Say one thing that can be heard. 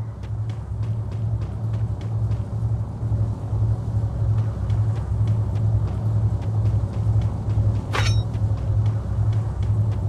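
Footsteps thud quickly on grass.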